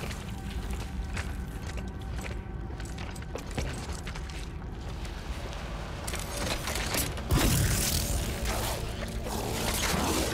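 Heavy footsteps crunch on loose gravel.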